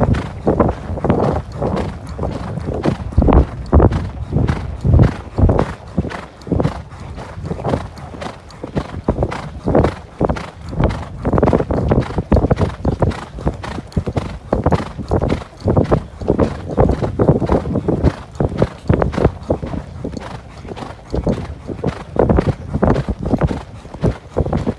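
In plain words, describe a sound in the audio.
Horse hooves thud steadily on a sandy track.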